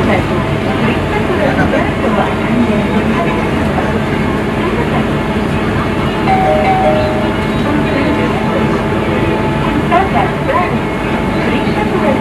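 A bus engine rumbles steadily as the bus drives along.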